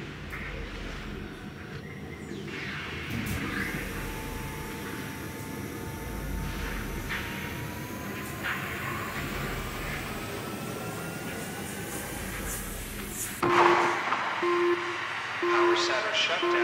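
Steam hisses steadily from vents, swelling louder near the end.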